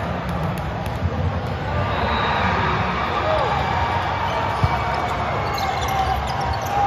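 A crowd of spectators and players murmurs and calls out in a large echoing hall.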